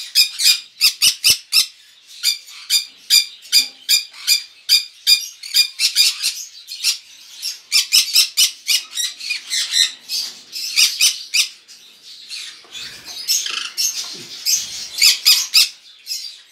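Parrots screech in rapid, shrill, repeated calls close by.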